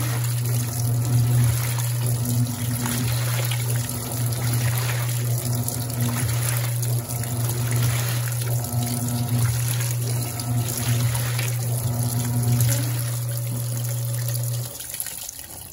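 A washing machine motor hums steadily.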